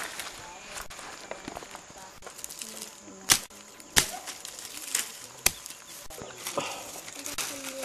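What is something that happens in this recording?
Dry palm leaves rustle and crackle as they are handled.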